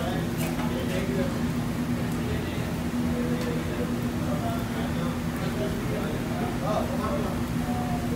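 A rolling pin rolls flatbread dough on a steel counter.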